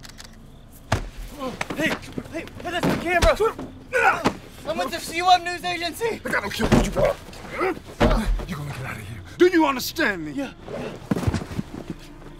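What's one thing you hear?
A man shouts angrily close by.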